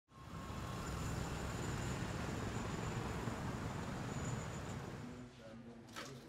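Motorbikes and cars drive past on a busy street.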